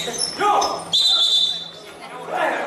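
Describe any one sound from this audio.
A referee blows a whistle.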